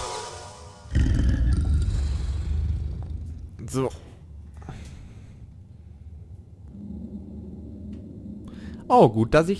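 A young man speaks close into a microphone.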